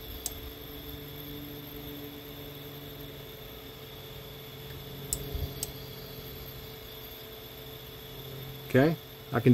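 An electric motor hums steadily close by.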